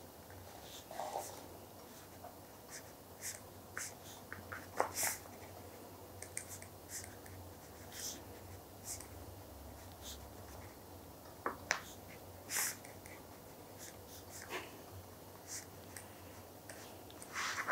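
Pens scratch softly on paper.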